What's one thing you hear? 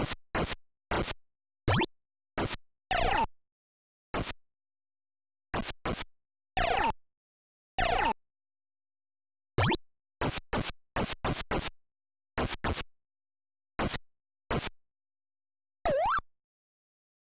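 Short electronic blips and chimes sound in quick bursts, then stop.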